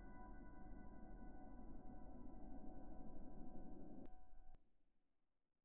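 Soft, droning game music plays and then stops.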